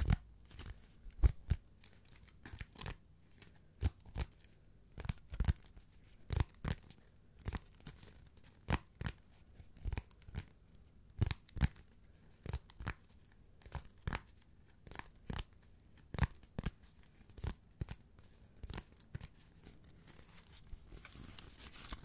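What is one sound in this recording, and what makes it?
Fingertips tap and drum on a cardboard box close to the microphone.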